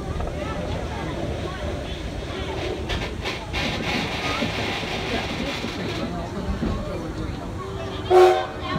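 A steam locomotive hisses and rumbles steadily nearby.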